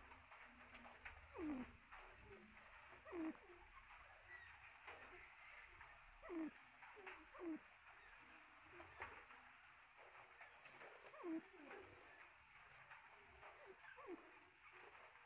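A partridge makes low, soft, falling clucking calls, again and again.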